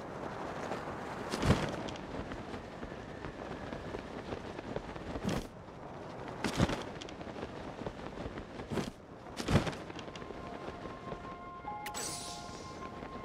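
Wind rushes steadily past while gliding through the air.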